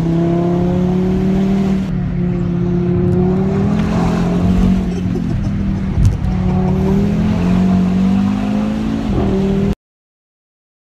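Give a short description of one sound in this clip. A car engine hums loudly and steadily as it accelerates.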